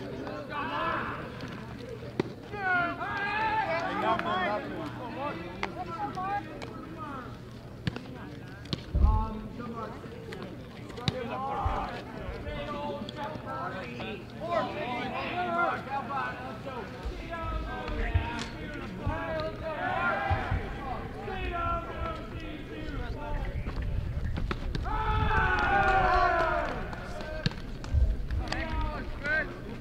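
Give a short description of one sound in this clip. Men and boys call out and chatter across an open field.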